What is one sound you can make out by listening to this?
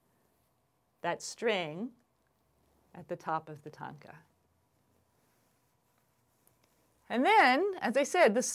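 A woman speaks calmly and clearly into a close microphone, pausing between phrases.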